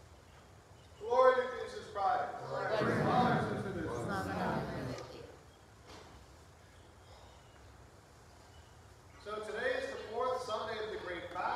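A man chants in a steady, sung voice.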